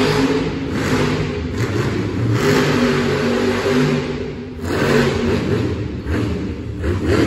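A monster truck engine roars loudly in a large echoing arena.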